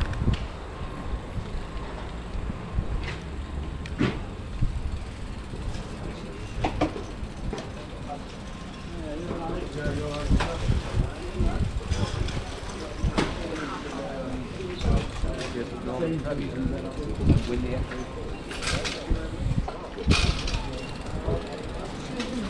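A busy outdoor crowd murmurs with distant voices and footsteps.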